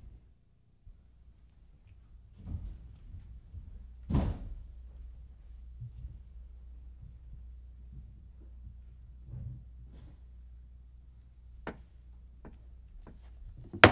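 A man turns the pages of a book.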